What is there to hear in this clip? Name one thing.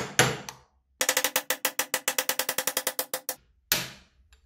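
A metal punch taps rapidly against a metal part.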